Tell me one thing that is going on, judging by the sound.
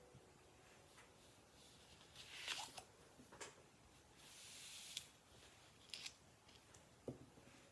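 Small objects are set down with soft taps.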